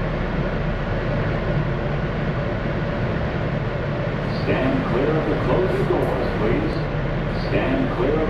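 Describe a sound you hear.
A stopped subway train hums steadily at idle.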